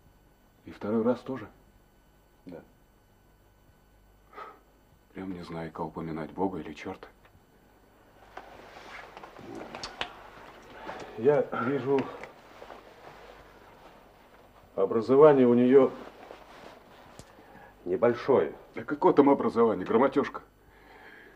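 Another middle-aged man answers calmly nearby.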